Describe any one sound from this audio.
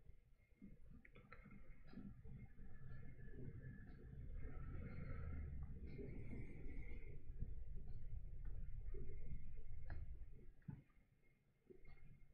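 A paintbrush dabs and scrapes softly on canvas.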